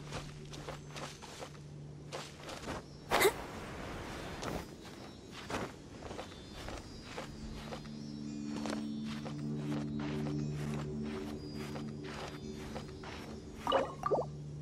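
Quick light footsteps patter on stone.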